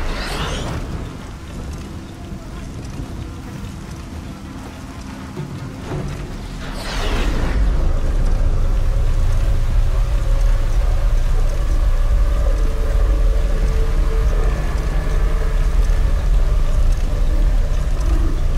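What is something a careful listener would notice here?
Heavy rain falls steadily outdoors.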